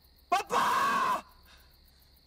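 A young man cries out loudly.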